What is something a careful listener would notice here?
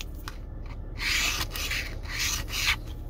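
A coin scratches rapidly across a paper card.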